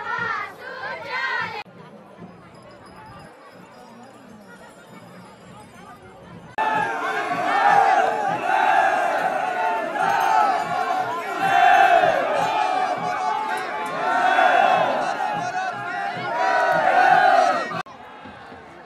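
A large crowd of men chants loudly together outdoors.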